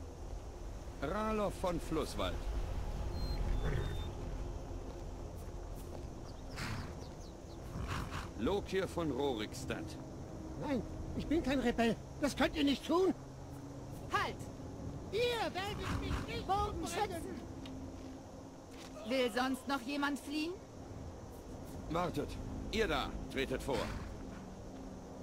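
Men talk back and forth in calm, low voices outdoors.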